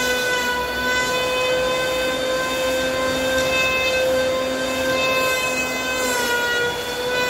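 An electric planer whines loudly and steadily as it shaves wood.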